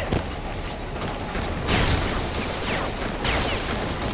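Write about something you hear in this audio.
Small pieces clatter and jingle as they scatter.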